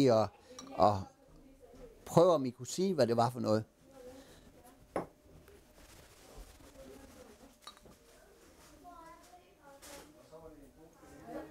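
Beer pours and fizzes into a glass.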